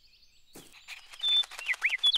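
A small dog barks.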